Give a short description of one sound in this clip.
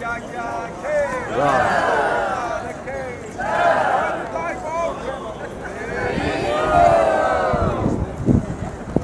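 A crowd of men and women cheers and shouts outdoors.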